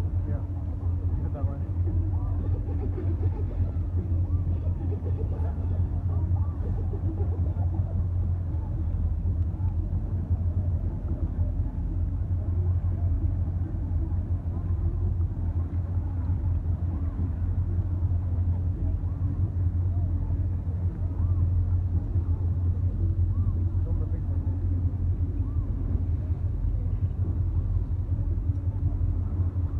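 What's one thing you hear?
A boat engine rumbles steadily close by.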